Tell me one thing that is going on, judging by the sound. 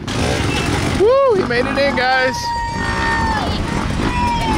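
A dirt bike engine revs up and down nearby.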